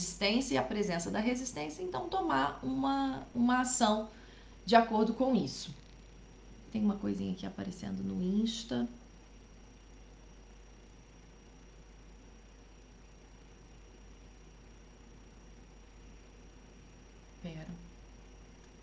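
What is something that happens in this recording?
A young woman speaks calmly and closely into a microphone, with pauses.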